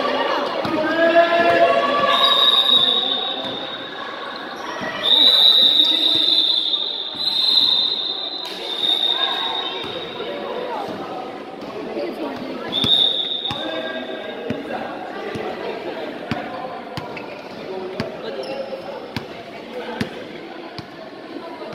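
Young women shout and call out in an echoing hall.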